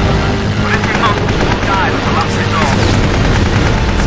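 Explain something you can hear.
Machine guns fire in rapid bursts.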